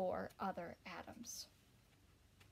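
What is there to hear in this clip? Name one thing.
A young woman reads aloud calmly, close by.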